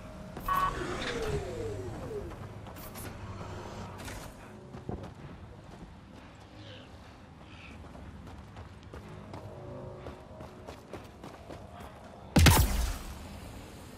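Footsteps crunch on sand and rock.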